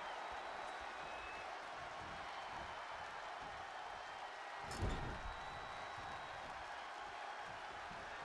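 A large crowd cheers steadily throughout.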